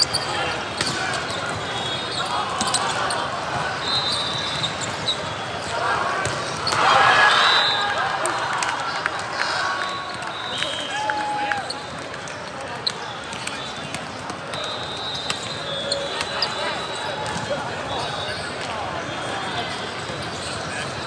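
A volleyball thumps against hands.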